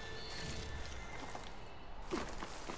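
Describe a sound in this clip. Short bright chimes ring out one after another.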